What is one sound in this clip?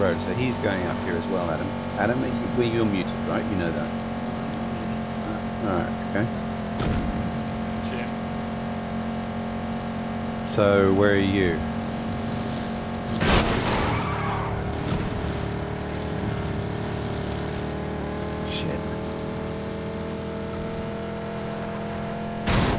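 A car engine hums steadily while driving at speed.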